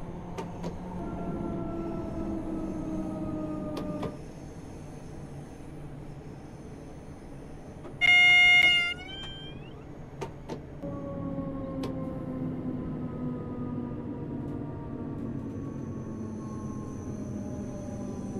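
Electric train motors whine, falling slowly in pitch.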